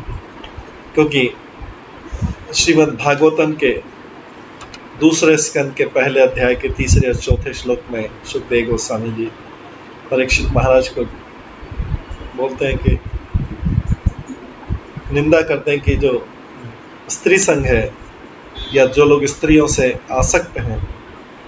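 A middle-aged man speaks calmly over an online call.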